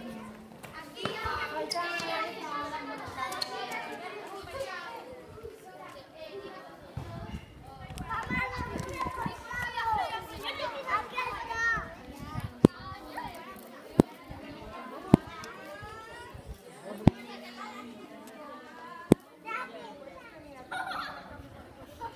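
Children shout and chatter excitedly nearby.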